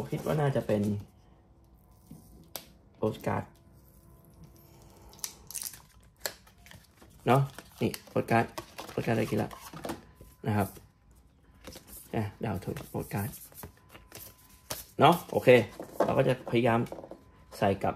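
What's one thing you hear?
Cards and cardboard rustle and tap as they are handled.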